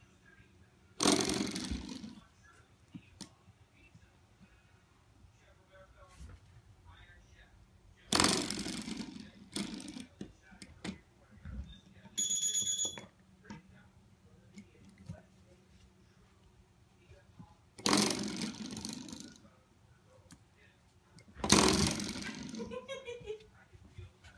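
A door stopper spring twangs and buzzes when flicked, ringing out for a moment each time.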